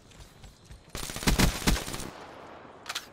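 Gunfire rattles in a short, loud burst.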